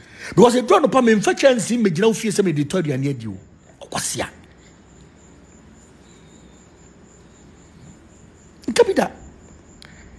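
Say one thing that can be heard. A man speaks with animation close to a phone microphone.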